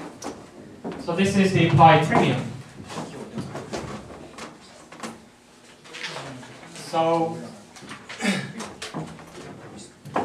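A man speaks calmly into a microphone, amplified through a loudspeaker in a room.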